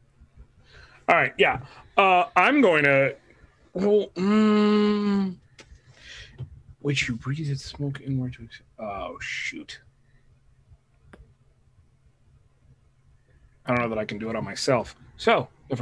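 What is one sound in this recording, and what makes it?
A man speaks animatedly over an online call, drawing out his voice.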